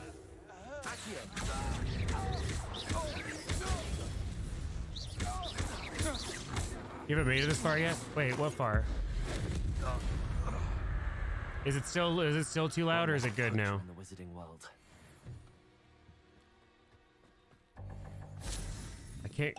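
Spells crack and blasts boom in a video game.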